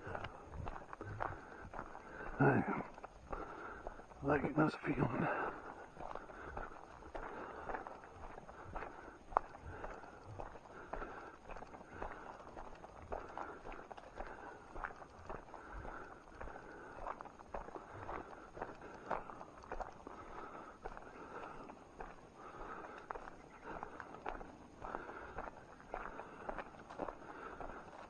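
Footsteps crunch and rustle through dry leaves and undergrowth.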